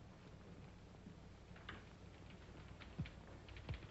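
Footsteps click across a hard floor.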